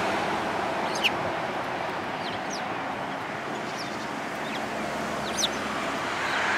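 A small bird chirps in short high calls close by.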